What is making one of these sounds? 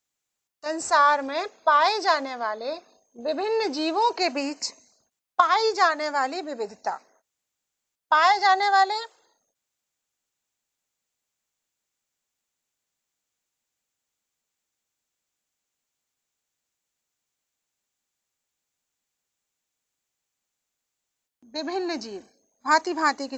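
A woman speaks in a lecturing tone through a microphone, with long pauses.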